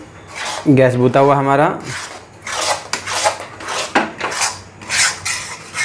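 A metal spatula scrapes and stirs against a metal pan.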